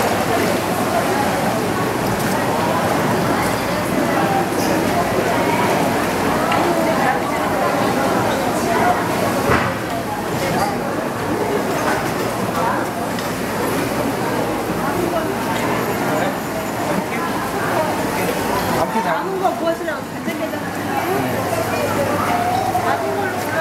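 A crowd of men and women chatters nearby, a steady busy babble.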